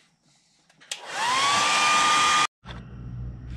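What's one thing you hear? An airbrush hisses as it sprays air.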